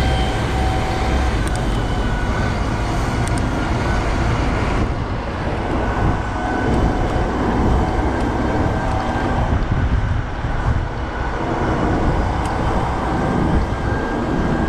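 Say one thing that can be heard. Bicycle tyres hum on a road.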